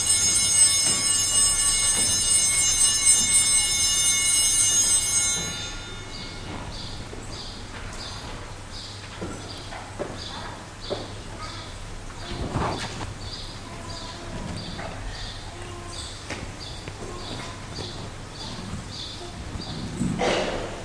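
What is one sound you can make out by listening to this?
A man speaks quietly at a distance in an echoing hall.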